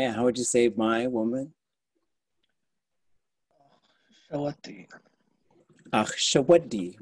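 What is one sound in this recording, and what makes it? A man speaks slowly and clearly over an online call, pausing between words.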